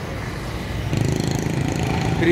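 A tractor engine rumbles along a busy road.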